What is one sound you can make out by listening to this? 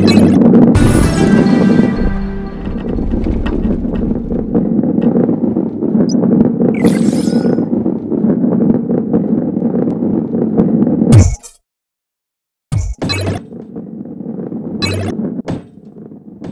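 A ball rolls and rumbles along a track.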